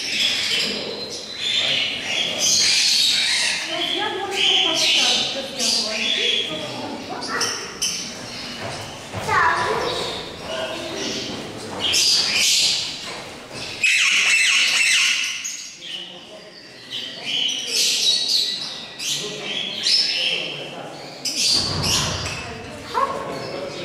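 Parrots squawk and chatter loudly nearby.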